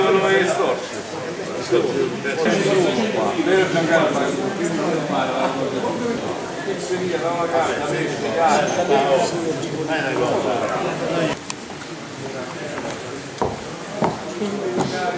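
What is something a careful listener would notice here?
Several men and women talk over each other loudly in an echoing hall.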